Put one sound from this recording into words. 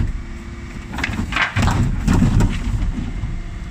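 Rubbish tumbles from the bins into a garbage truck with a loud crash.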